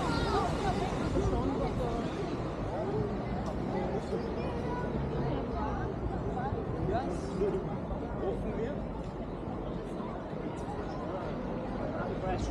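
City traffic rumbles steadily nearby, outdoors.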